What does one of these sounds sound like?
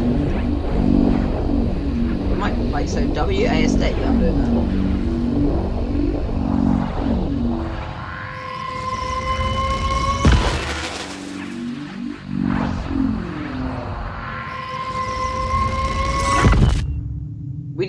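Loud crackling static hisses and warbles as a television is tuned.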